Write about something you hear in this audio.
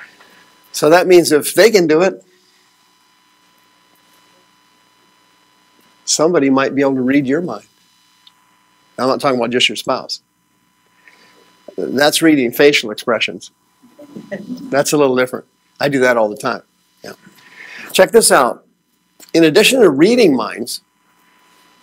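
A man speaks calmly to an audience in a room, with pauses between phrases.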